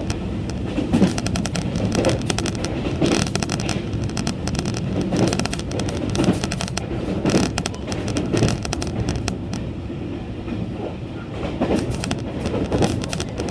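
A train rumbles and rattles steadily along the tracks.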